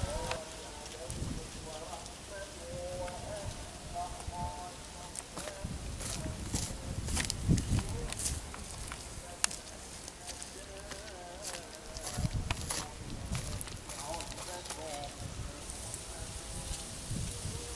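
Embers crackle and pop faintly under a grill.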